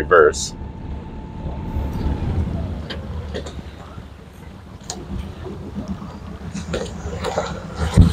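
Water laps gently against a dock.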